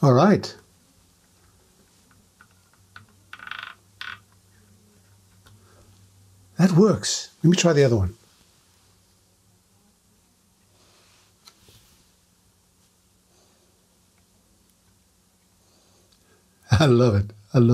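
A cotton swab scrapes softly inside a small metal socket.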